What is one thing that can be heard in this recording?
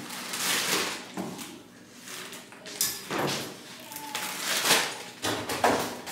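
A plastic water bottle crinkles in a hand.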